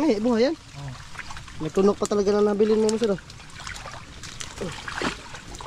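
Water splashes as hands move through shallow muddy water.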